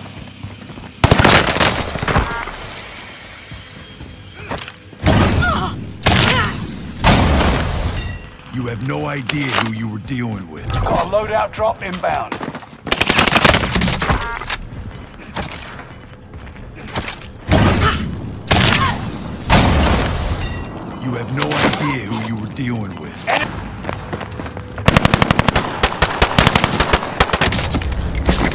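Gunshots crack in sharp bursts, with rapid fire near the end.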